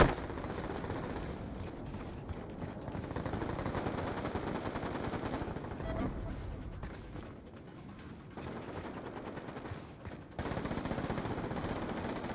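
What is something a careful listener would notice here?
Footsteps tread steadily on a hard deck.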